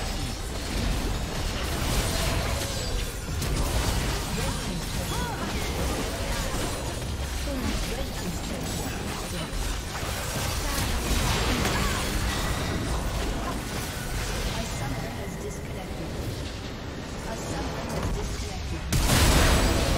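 Game spells and blows clash and crackle in a busy battle.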